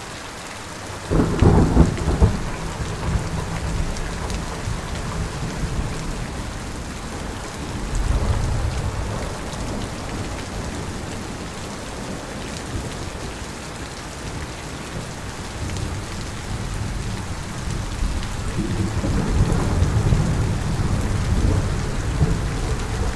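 Heavy rain pours steadily outdoors.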